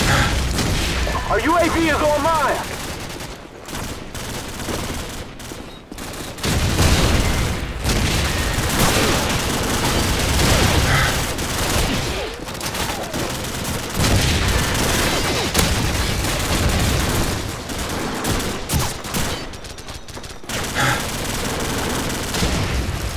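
Gunfire rattles in bursts close by.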